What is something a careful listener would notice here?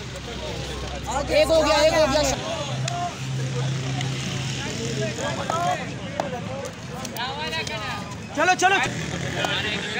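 Men in a crowd shout and cheer outdoors.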